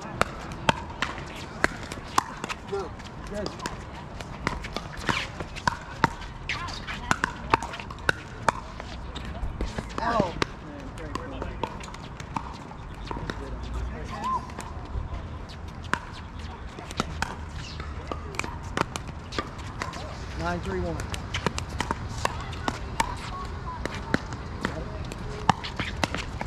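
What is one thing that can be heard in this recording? Shoes squeak and scuff on a hard court.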